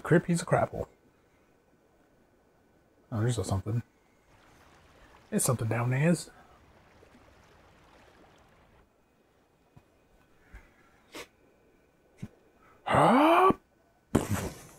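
Water swirls and bubbles softly around a swimmer underwater.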